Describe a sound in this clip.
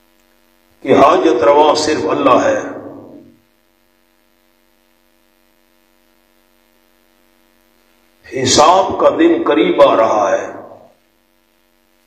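A man recites in a chanting voice through a microphone.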